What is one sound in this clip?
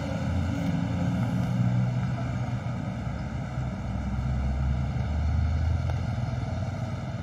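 Strong wind blows outdoors and rumbles against the microphone.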